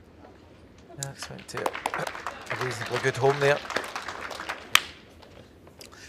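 A crowd applauds in a large indoor hall.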